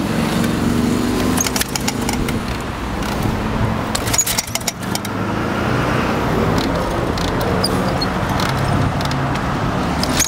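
A motorcycle kick starter is stomped several times.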